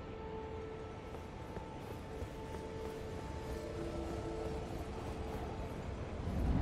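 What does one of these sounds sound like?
Armoured footsteps clink on a stone floor.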